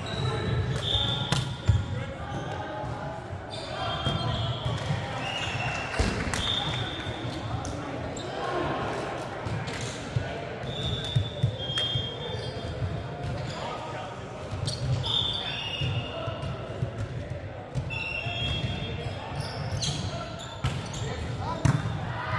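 Men call out and talk to each other across the hall.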